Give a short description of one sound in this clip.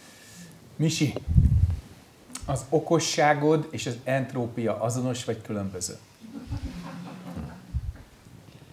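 An elderly man speaks calmly and slowly, close by.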